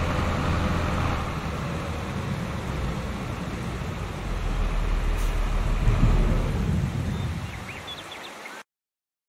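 A tractor engine rumbles steadily as it drives.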